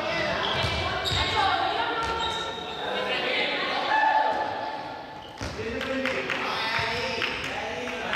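Young people shout and call out in a large echoing hall.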